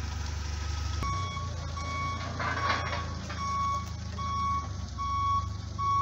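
A forklift's reversing alarm beeps in a regular rhythm.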